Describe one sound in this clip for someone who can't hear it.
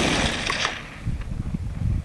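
A bullet smacks into a dirt slope.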